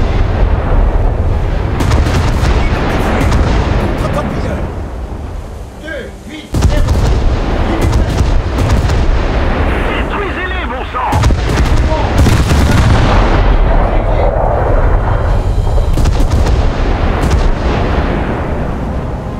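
A ship's engines rumble deeply and steadily.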